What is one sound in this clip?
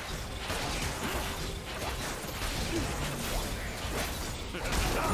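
Magic spells whoosh and crackle in a fast battle.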